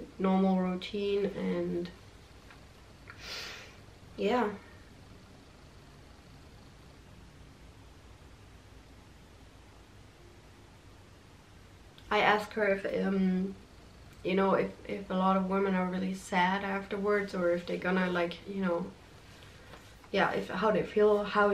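A young woman speaks calmly and close by, pausing often.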